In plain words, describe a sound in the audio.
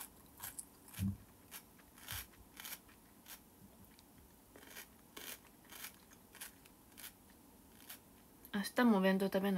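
A young woman chews crunchy food close by.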